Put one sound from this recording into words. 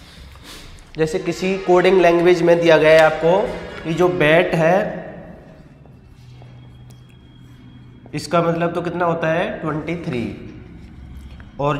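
A young man speaks clearly and steadily, as if teaching, close to a microphone.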